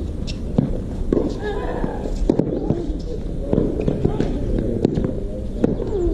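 A tennis ball is struck sharply with a racket, back and forth in a rally.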